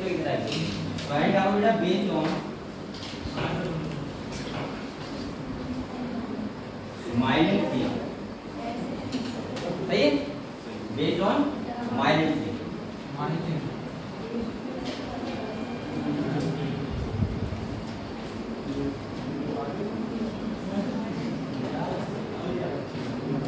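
A young man speaks calmly in an echoing room.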